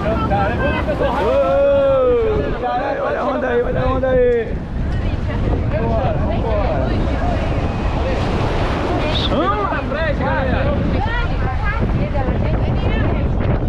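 Young women shout and whoop with excitement close by.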